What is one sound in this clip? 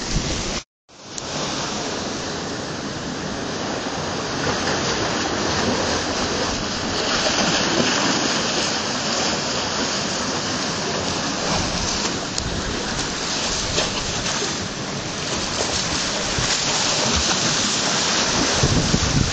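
Small waves wash onto a rocky shore.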